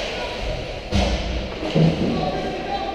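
Hockey sticks and a puck clack against the ice.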